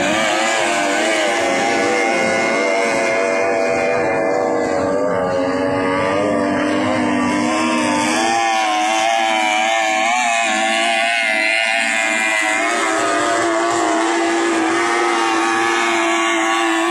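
A speedboat engine roars and whines as the boat races across the water.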